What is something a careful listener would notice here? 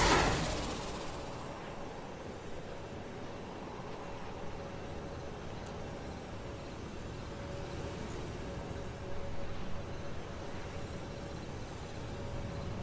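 Soft wind hums during a slow glide.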